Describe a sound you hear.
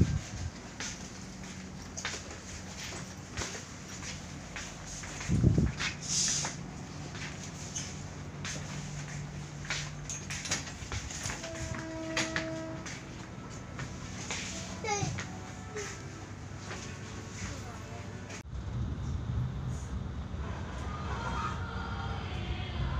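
A train carriage rattles and clatters as it moves.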